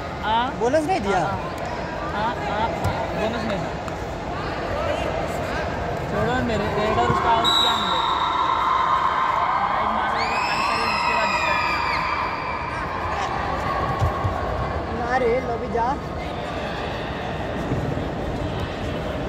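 A crowd of young men shouts and cheers in a large echoing hall.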